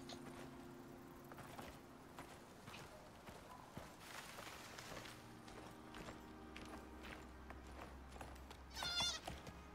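Footsteps crunch over grass and rock.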